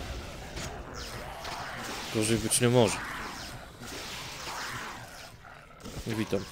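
Magic spells crackle and burst.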